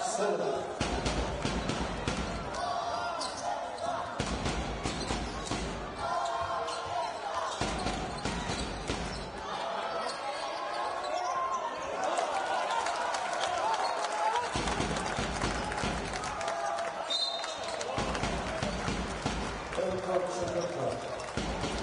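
A crowd murmurs in a large indoor hall.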